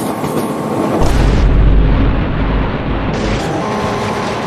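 A locomotive derails and crashes heavily into the ground.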